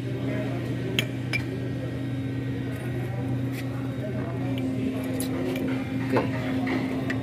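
Metal brake parts clink and knock as hands handle them.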